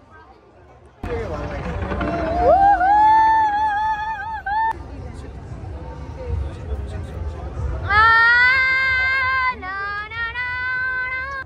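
Fireworks boom and rumble overhead.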